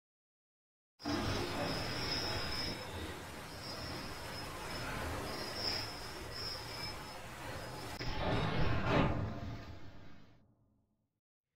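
Waves wash against a boat's hull.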